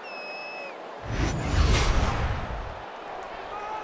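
A loud whoosh sweeps past.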